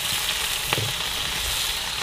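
Chopsticks scrape against a metal pan.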